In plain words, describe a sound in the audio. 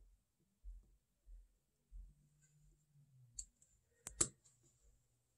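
Small watch parts click and tap on a hard surface.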